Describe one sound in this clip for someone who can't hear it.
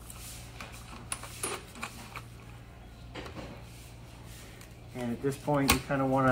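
Metal parts click and rattle as hands work on a sprung seat.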